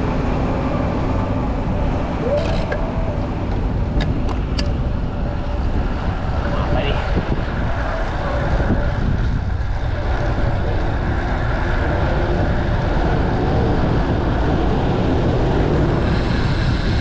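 Traffic hums nearby on a city street.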